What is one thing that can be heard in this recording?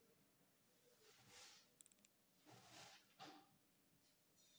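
A sheet of paper rustles as it is shifted.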